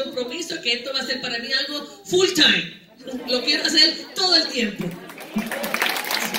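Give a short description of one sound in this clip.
A teenage boy speaks into a microphone over loudspeakers in an echoing hall.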